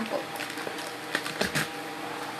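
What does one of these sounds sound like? Keys clatter on a computer keyboard.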